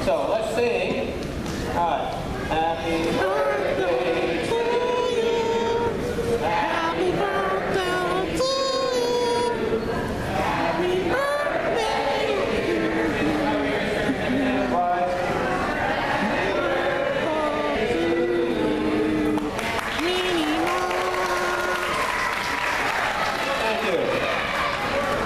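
A crowd of adults chatters in a large echoing hall.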